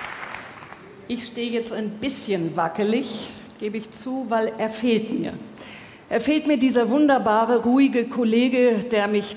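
A woman speaks clearly into a microphone, addressing a hall.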